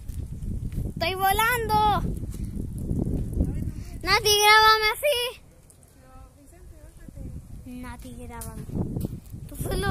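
A young boy talks excitedly close to the microphone.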